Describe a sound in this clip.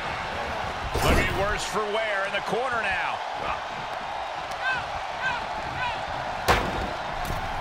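Heavy blows and body slams thud on a wrestling ring.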